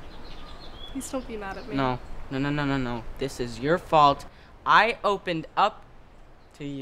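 A teenage girl speaks calmly and close by.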